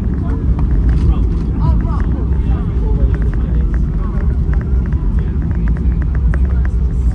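Aircraft wheels thump and rattle over the runway.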